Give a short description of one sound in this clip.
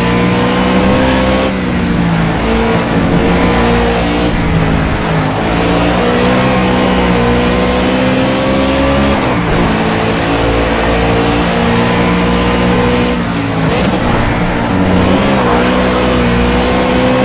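A race car engine roars loudly, rising and falling in pitch as it shifts gears.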